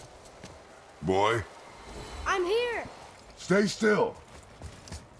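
A young man speaks through a headset microphone.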